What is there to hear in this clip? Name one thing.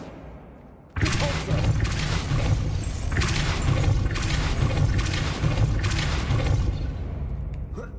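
A magic spell crackles and roars loudly.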